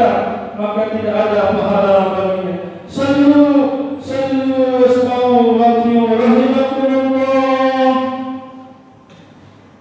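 A man chants in a long, drawn-out voice through a loudspeaker in a large echoing hall.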